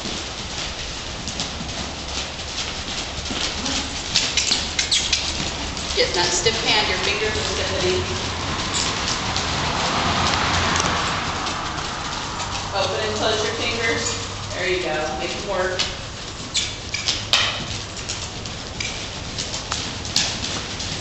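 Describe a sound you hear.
A horse's hooves thud softly on dirt as it trots.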